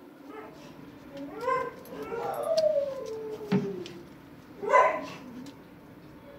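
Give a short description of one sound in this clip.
A dog's claws click and scrape on a hard floor.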